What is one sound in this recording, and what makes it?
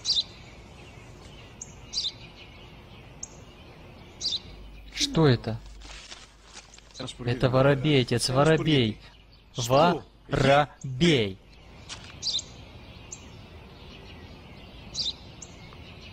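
A sparrow chirps nearby.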